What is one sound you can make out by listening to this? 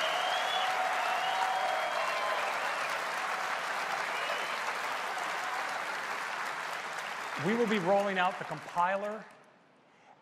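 A large audience applauds and cheers in a big hall.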